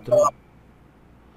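A man speaks briefly over an online call.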